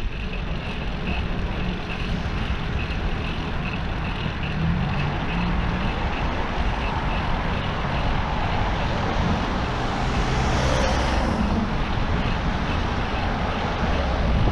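Wind buffets steadily while riding outdoors.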